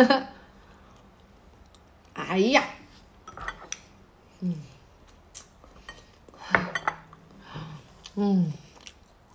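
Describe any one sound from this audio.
A young woman talks casually and close by, in short bursts.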